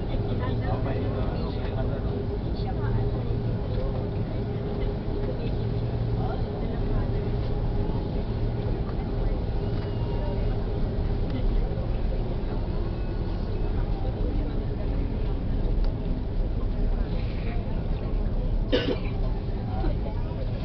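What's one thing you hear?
A plane's cabin rumbles and rattles as it rolls over the ground.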